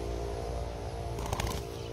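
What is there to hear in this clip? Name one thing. A small bird flutters its wings on the ground.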